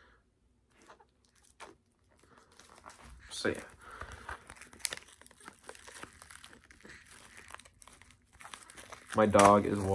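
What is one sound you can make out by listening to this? Plastic crinkles and crackles as a case is unwrapped.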